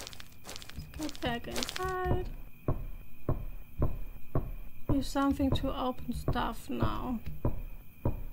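A young woman speaks briefly into a microphone, close and clear.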